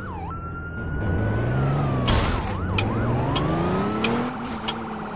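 A truck engine hums and revs as the truck pulls away.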